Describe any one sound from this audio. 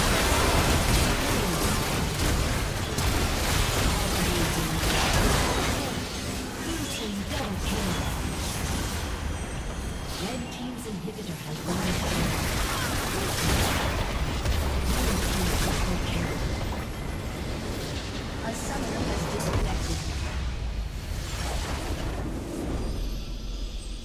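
Fantasy battle sound effects of spells whooshing and blasting clash rapidly.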